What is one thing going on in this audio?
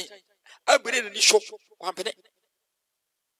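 A man speaks briefly over an online call, then falls silent.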